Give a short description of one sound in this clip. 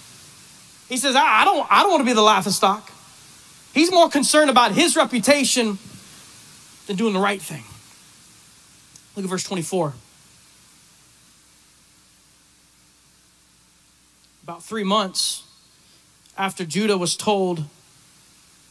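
A middle-aged man speaks with animation into a microphone, heard through loudspeakers in a large echoing hall.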